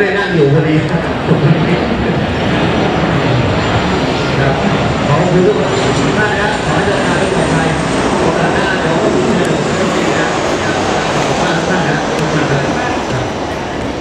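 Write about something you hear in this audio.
A team of young men in a huddle shouts and cheers together.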